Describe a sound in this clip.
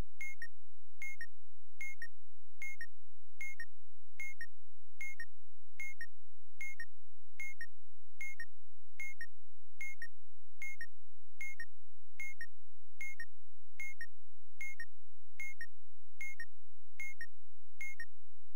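Short electronic musical tones beep in a steady, even rhythm.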